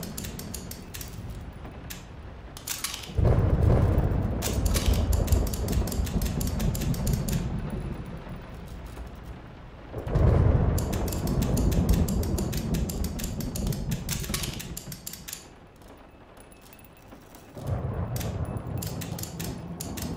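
A safe's combination dial clicks rapidly as it turns.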